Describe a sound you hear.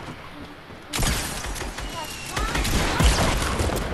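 Rapid gunfire rings out in a video game.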